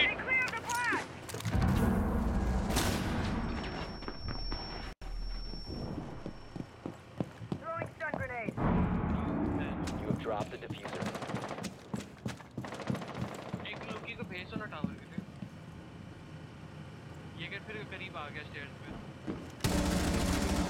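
Footsteps thud on wooden stairs and floors.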